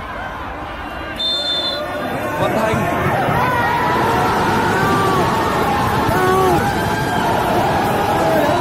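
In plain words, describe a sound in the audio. A crowd of young men shout and cheer excitedly nearby.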